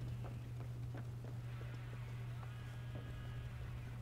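Quick footsteps run across a wooden floor.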